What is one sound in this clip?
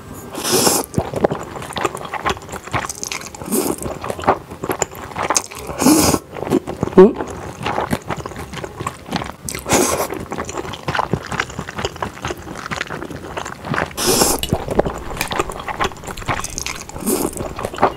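A young woman chews food with wet, smacking sounds.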